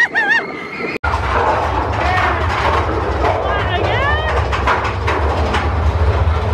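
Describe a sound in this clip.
A roller coaster train rumbles and rattles along its track.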